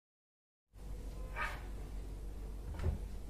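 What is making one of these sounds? A cupboard door clicks and swings open.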